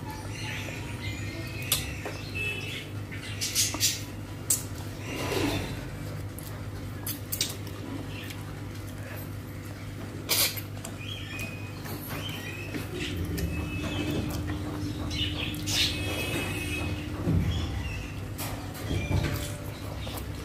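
A woman chews and smacks her lips loudly, close up.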